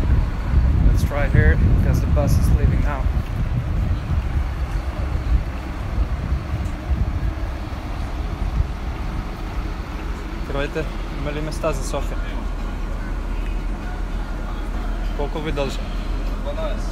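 A young man talks casually close to the microphone.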